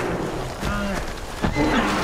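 Branches and leaves rustle as someone pushes through a bush.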